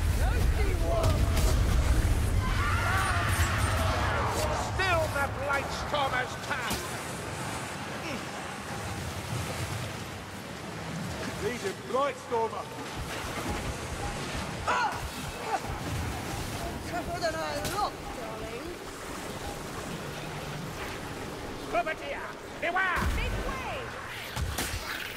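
Blades slash and thud against creatures.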